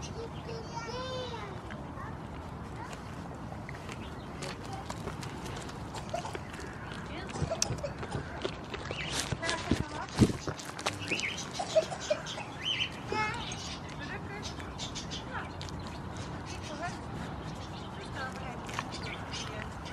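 A goat chews and munches on banana peel close by.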